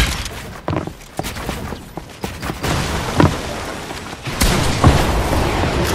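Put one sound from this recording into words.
Wooden walls are built with quick knocking thuds.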